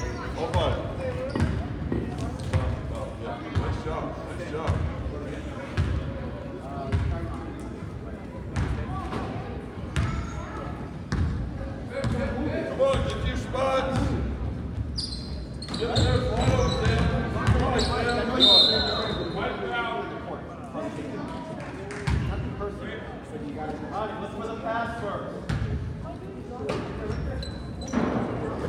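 A crowd of children and adults chatter and call out across the gym.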